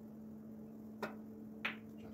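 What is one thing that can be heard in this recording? A cue strikes a snooker ball with a sharp tap.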